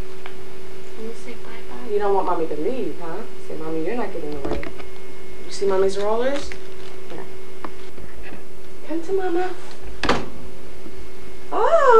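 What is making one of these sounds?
A young girl talks to a baby in a high, coaxing voice, close by.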